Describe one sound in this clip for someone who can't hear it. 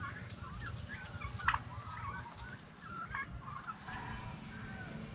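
Turkeys chirp and peep.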